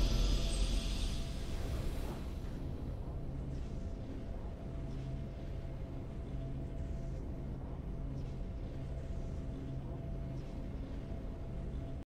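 Triumphant game music plays with a bright swell that fades.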